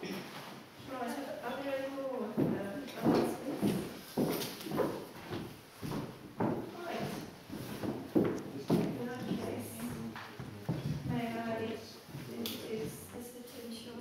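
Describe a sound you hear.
A man speaks to an audience in a hall with a slight echo.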